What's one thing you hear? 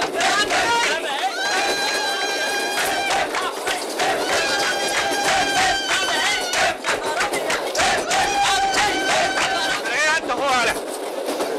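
People clap their hands in a rhythm.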